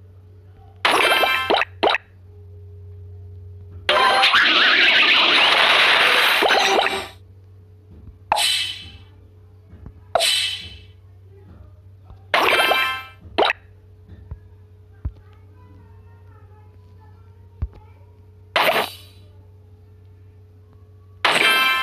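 Bright chiming game sound effects burst out in short bursts.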